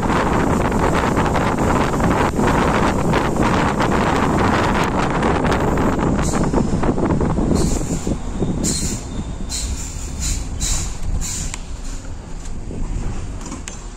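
Air rushes past an open vehicle window.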